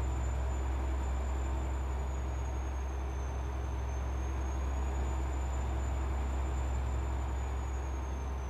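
Tyres roll with a low rumble on the road.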